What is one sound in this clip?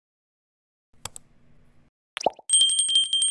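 A mouse clicks.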